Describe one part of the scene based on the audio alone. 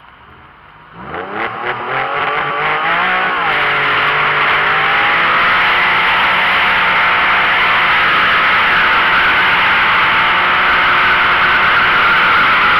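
A car engine revs hard and roars loudly.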